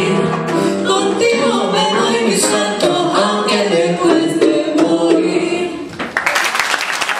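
A piano plays along with lively chords.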